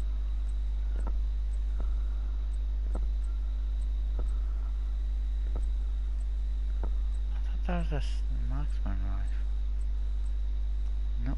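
Soft interface clicks tick as menu items change.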